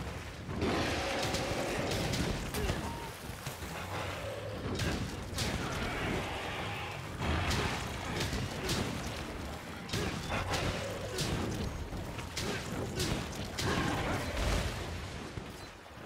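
Heavy sword blows strike a monster with sharp explosive bursts.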